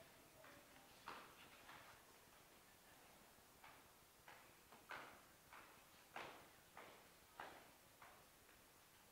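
Footsteps stamp in a steady marching rhythm on a hard floor.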